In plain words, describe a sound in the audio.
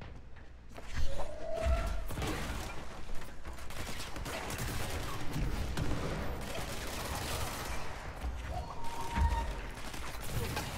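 A pistol fires in rapid bursts.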